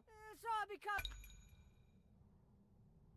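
A bright chime rings once and fades.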